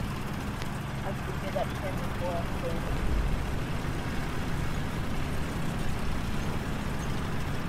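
Tank tracks clatter and squeak over the road.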